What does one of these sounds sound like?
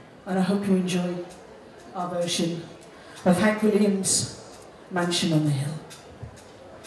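A woman sings loudly into a microphone in short phrases.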